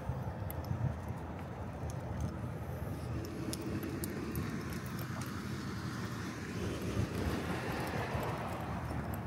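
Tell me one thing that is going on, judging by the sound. Footsteps scuff on asphalt.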